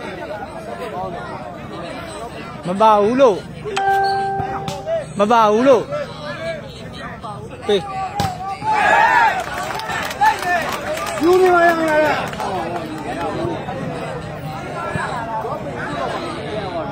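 A crowd of men and women chatters and calls out outdoors.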